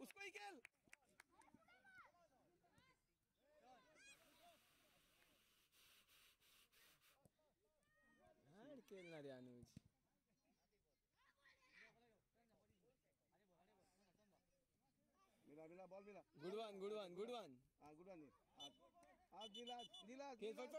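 Young girls shout and call to each other across an open field.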